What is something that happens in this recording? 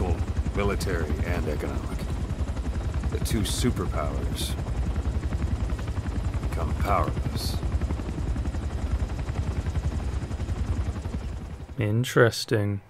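A helicopter's rotor thuds steadily and loudly.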